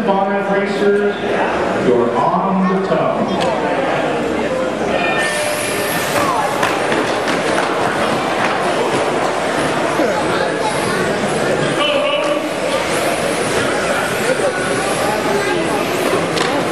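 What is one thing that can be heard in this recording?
Small electric motors whine as toy race cars speed around a track.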